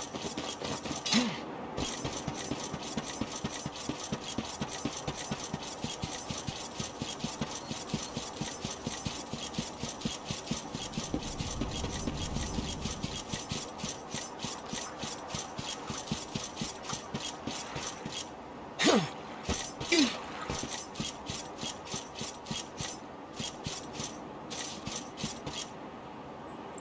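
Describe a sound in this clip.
Quick footsteps run over the ground in a steady rhythm.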